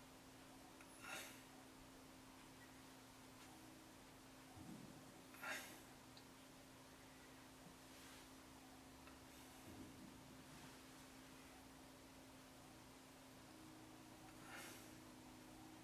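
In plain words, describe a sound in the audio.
Fingers tap and click softly against a small hard object.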